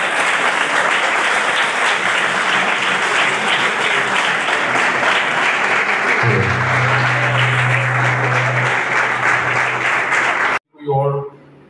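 A crowd claps and cheers in a large room.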